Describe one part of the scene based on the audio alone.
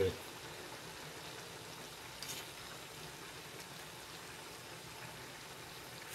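A metal spoon stirs and scrapes food in a pot.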